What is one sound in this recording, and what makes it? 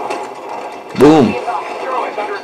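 Explosions boom from a video game.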